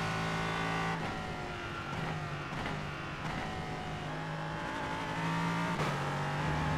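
A gearbox clunks as gears shift.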